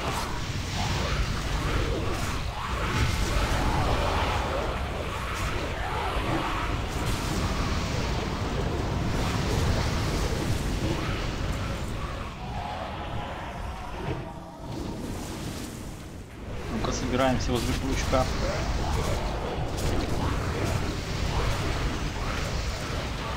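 Game combat effects crackle, clash and boom continuously.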